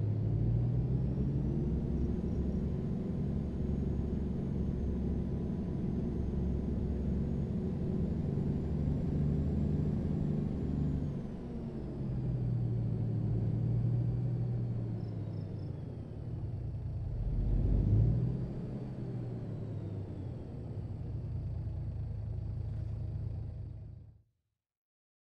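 A truck engine rumbles steadily and shifts in pitch as the truck drives.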